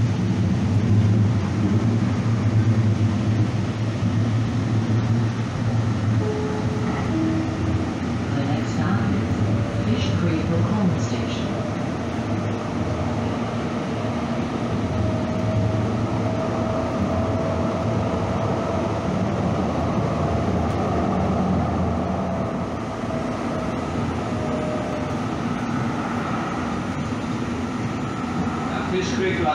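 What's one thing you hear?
A light rail train hums and rumbles steadily along the tracks.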